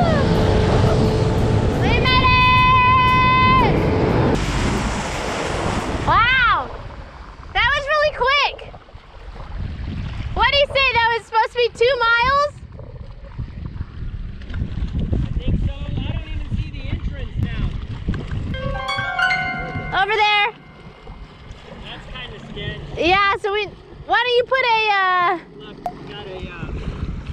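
Water splashes and laps against a jet ski.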